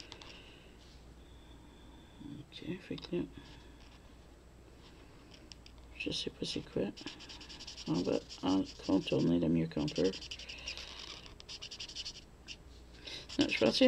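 A felt-tip marker squeaks and scratches softly across paper.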